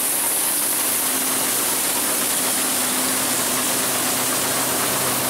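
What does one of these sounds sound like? A combine harvester engine roars steadily up close.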